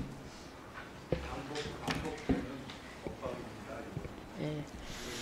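Men and women talk quietly in a large room.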